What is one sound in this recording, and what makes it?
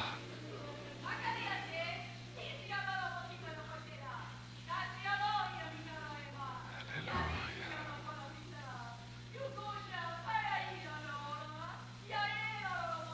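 An elderly woman speaks steadily into a microphone, heard over a loudspeaker.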